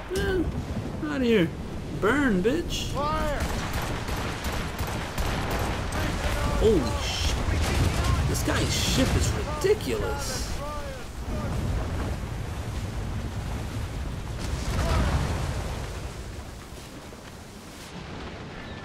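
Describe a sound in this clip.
Strong wind howls over rough sea.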